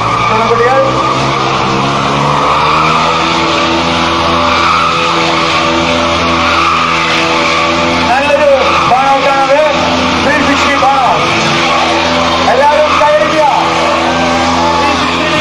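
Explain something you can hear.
A motorcycle engine revs loudly.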